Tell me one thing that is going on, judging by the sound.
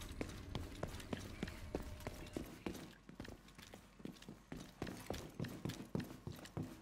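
Boots thud on a hard floor in quick, even footsteps.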